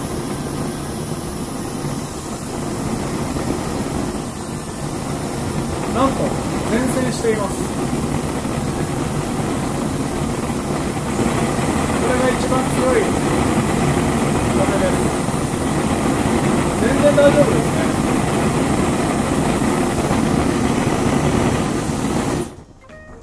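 A small stove flame burns with a soft, steady roar.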